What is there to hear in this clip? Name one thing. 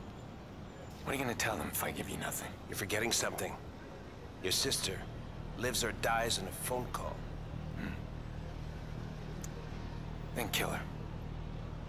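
A younger man answers calmly and firmly.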